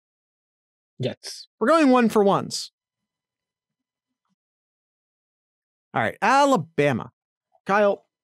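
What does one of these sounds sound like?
A man speaks with animation into a microphone, heard over an online call.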